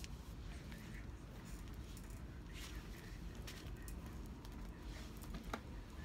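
Fabric rustles as a sleeve brushes over a pile of cards.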